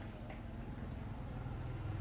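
A scoop dips and splashes into water in a pot.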